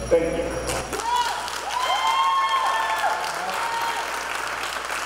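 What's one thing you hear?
A man speaks into a microphone over a loudspeaker in a large echoing hall.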